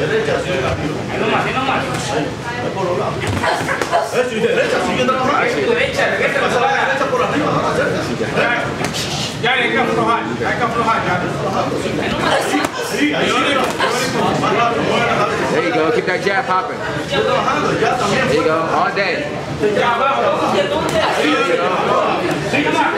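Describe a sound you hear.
Boxing gloves thud against padded headgear and gloves.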